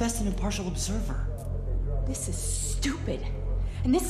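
A woman speaks sharply and firmly.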